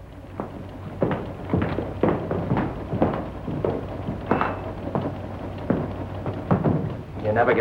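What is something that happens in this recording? Footsteps sound on a hard floor.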